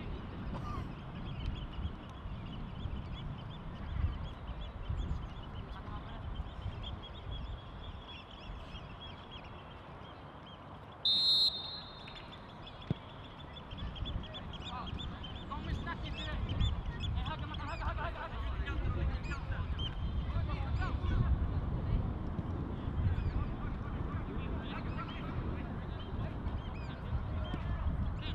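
Wind rumbles across the microphone outdoors.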